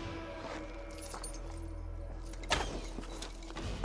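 Wooden bars crack and snap as they are pulled loose.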